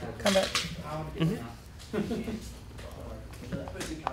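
Plastic dice clack as they are set down on a mat.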